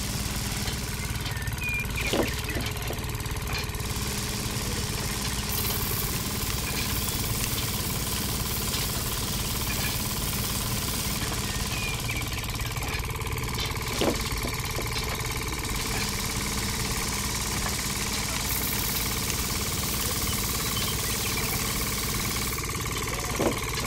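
A small motor whirs steadily.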